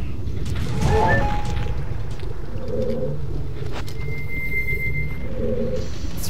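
Short chiming game sound effects play.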